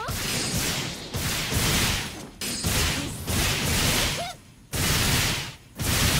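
Loud hissing energy blasts crackle in repeated bursts.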